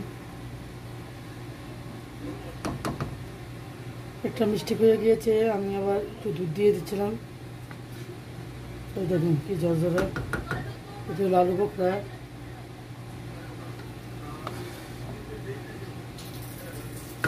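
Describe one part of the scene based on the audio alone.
A wooden spoon stirs and scrapes through cooked rice in a pot.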